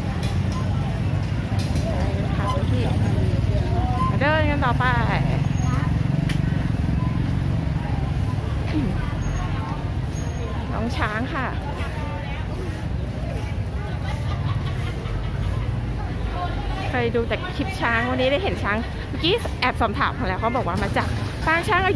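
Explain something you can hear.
Motorbikes ride past along a street.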